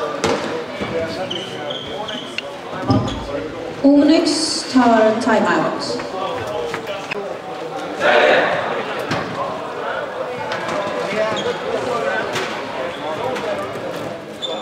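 Players shout and call out across a large echoing hall.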